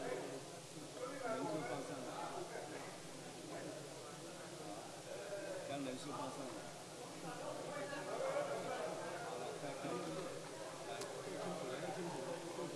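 Many men and women murmur and chat at once in a large echoing hall.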